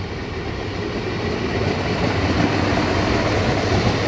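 A train's wheels clatter over the rails as it passes close by.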